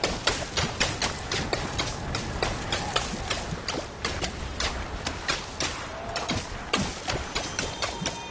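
A small ball bounces again and again with sharp taps.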